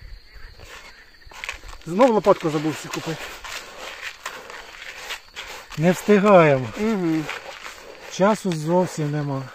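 Hands squelch and rustle as they mix damp bait in a plastic bowl.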